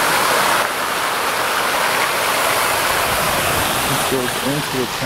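Water pours steadily down a wall into a pool, splashing loudly.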